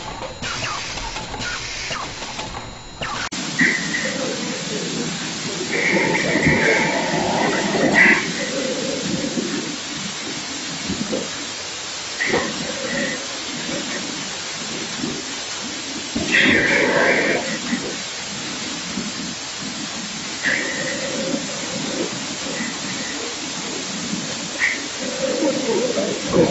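Packing machines whir and clatter steadily.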